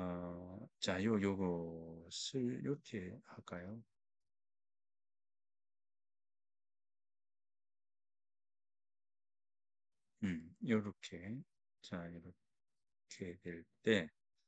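A man speaks calmly into a microphone, heard through an online call, with long pauses.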